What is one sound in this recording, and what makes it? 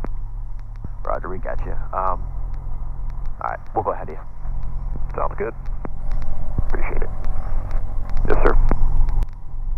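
A young man speaks calmly through a headset microphone.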